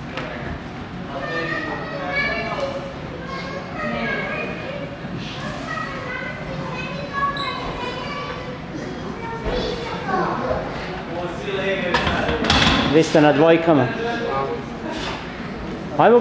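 Young men talk and call out encouragement nearby.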